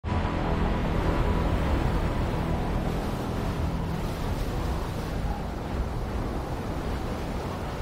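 Wind rushes past steadily during a freefall.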